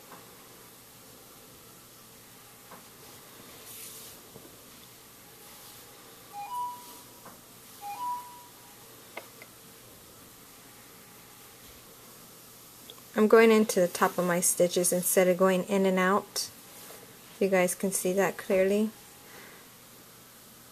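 Yarn softly rustles as it is pulled through knitted fabric.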